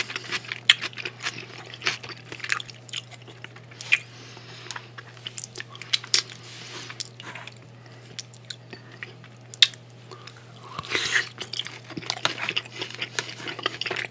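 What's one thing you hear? A fork clicks and scrapes against a plate.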